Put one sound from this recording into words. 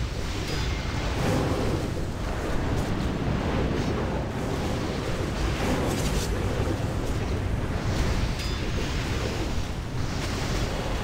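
Magic spells crackle and whoosh in a busy fantasy battle.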